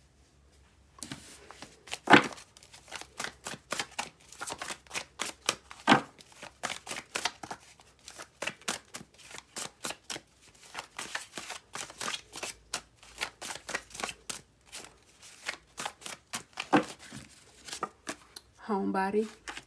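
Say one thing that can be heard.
Playing cards riffle and flap as they are shuffled by hand.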